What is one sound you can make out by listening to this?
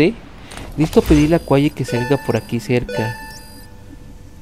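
Short electronic beeps and chimes sound.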